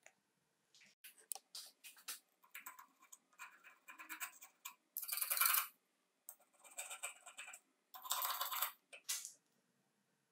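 Small metal parts click and scrape under a hand tool.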